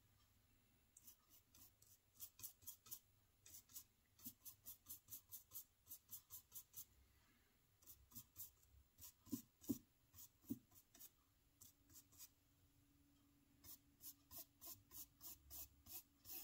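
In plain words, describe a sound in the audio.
A small brush dabs lightly against a hard surface in quick, repeated taps.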